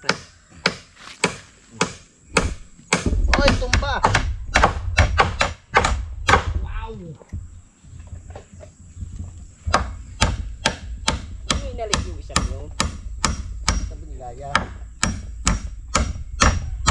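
A tool knocks against wood with sharp, regular blows.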